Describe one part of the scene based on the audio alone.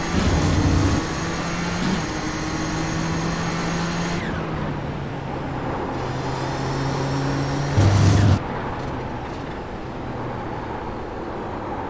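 A racing car engine roars steadily, shifting pitch as it accelerates and brakes.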